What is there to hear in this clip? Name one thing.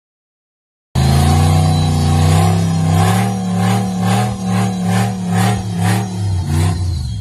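An off-road buggy engine roars loudly as it climbs over rock.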